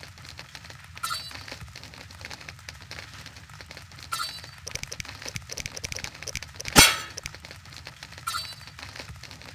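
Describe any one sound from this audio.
Soft game menu chimes ring as options are selected.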